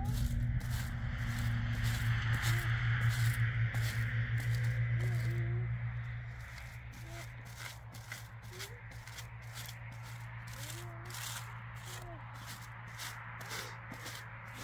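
A stiff brush scrapes back and forth over rough concrete in quick, even strokes.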